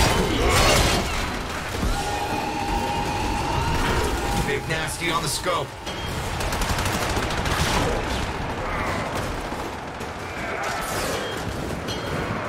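Guns fire in rapid bursts with loud bangs and blasts.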